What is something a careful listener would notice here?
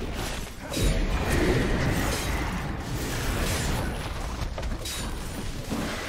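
Blows and magic effects clash repeatedly in a video game fight.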